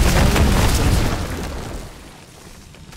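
Loud fighting sounds crash and clatter, then fade away.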